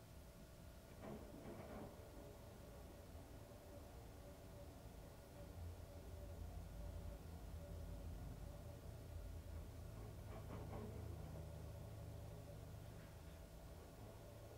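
Wet laundry tumbles and thumps inside a washing machine drum.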